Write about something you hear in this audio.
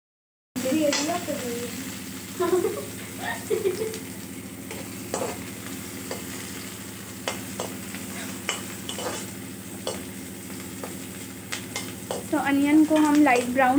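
Onions sizzle in hot oil.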